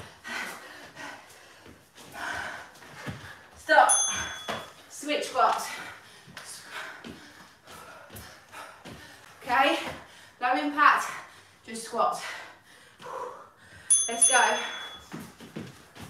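A woman speaks with animation, as if instructing, close to a microphone.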